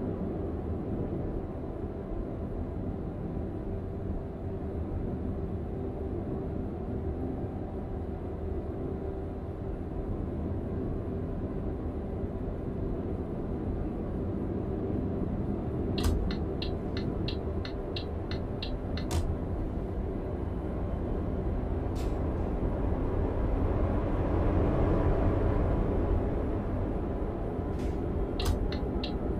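Tyres roll over the road surface.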